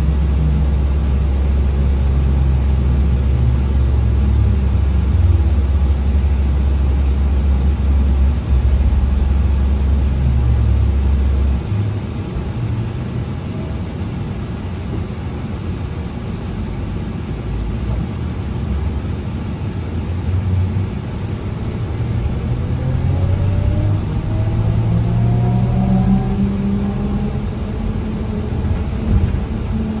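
The bus rattles and hums as it drives along the road.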